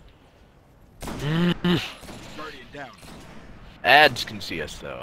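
A rifle fires loud, sharp shots.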